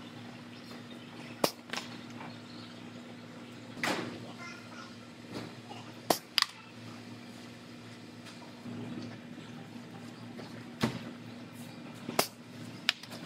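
A caulking gun clicks as its trigger is squeezed.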